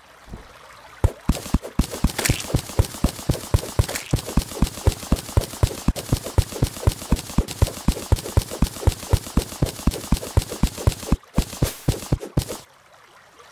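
A pickaxe chips rapidly at rock and dirt.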